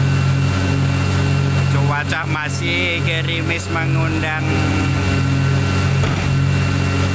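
A heavy diesel engine idles with a steady low rumble.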